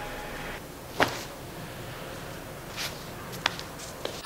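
Socked feet step softly on a tiled floor.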